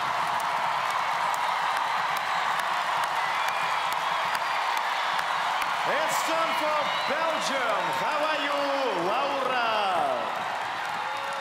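A large crowd cheers loudly in a big hall.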